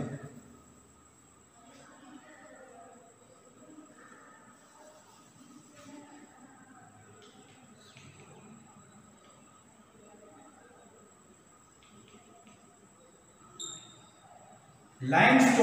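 Chalk taps and scrapes faintly on a blackboard.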